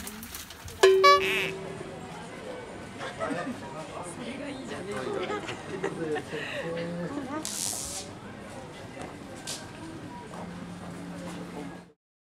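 A crowd of men and women chatters nearby in a busy outdoor street.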